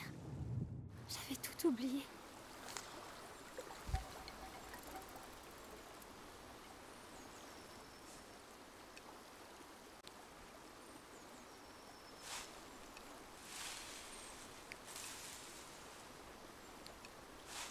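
A river flows steadily and gently.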